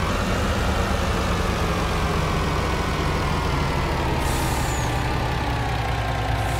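A truck engine rumbles steadily as it drives slowly.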